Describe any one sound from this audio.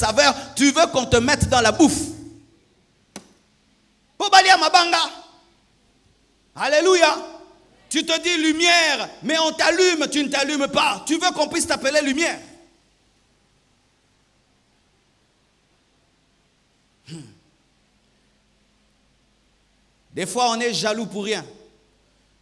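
A man preaches forcefully into a microphone, his voice ringing through an echoing hall, with long pauses.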